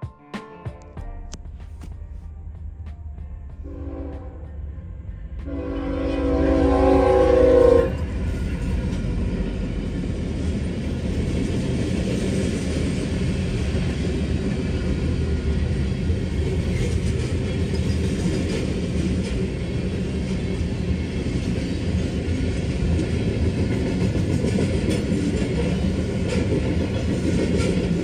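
A crossing bell rings steadily.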